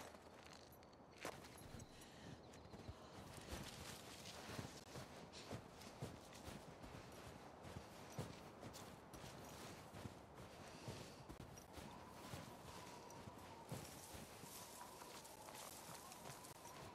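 Footsteps creep slowly and softly through snow.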